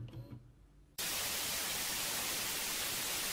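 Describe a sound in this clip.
Television static hisses steadily.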